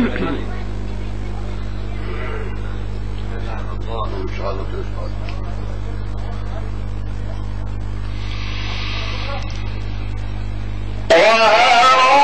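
A man recites in a drawn-out, chanting voice through a microphone.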